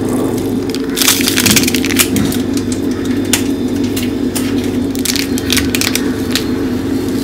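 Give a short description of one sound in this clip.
A plastic sachet crinkles in a hand.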